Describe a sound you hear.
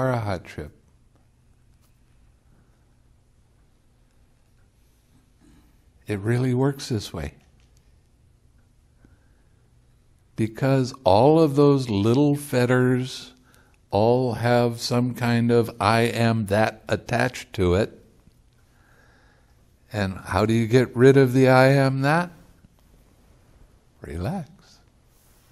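An elderly man speaks calmly and with animation into a close microphone, pausing often.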